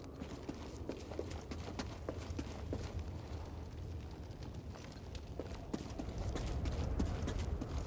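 Footsteps run over rock.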